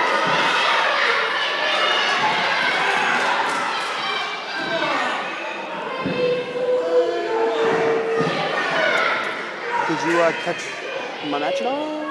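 A crowd chatters and cheers loudly in a large echoing hall.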